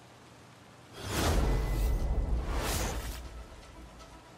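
Two loud whooshes sweep past one after the other.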